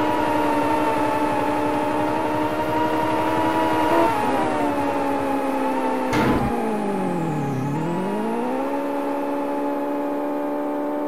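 A racing car engine hums steadily, dipping in pitch and rising again.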